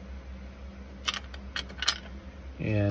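A metal tool taps and clicks against wire connectors.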